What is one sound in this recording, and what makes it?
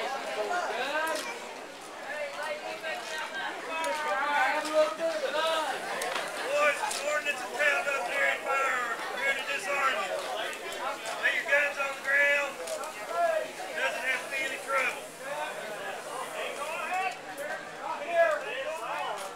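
Several men talk and call out with animation outdoors.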